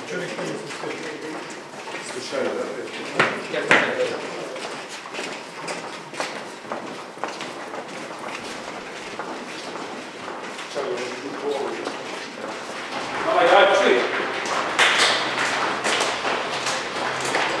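Football players' boots tap and scuff on a hard floor as they walk past.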